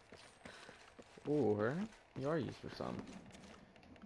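Footsteps creak on a wooden rope bridge.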